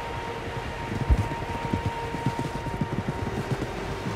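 Water splashes as a horse crosses a stream.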